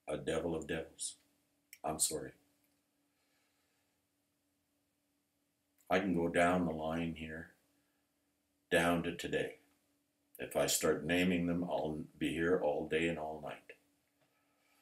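An older man speaks calmly into a microphone, in short phrases with pauses.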